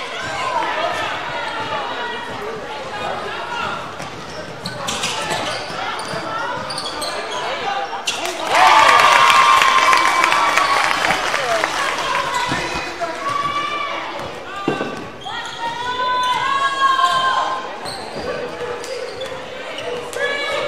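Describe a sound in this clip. A crowd of spectators shouts and cheers in a large echoing gym.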